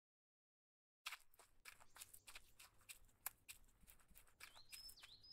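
Footsteps rustle through grass outdoors.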